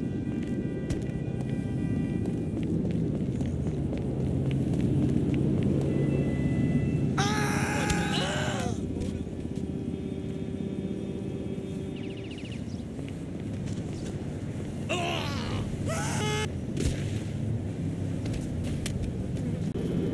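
A body thuds heavily onto hard ground, again and again.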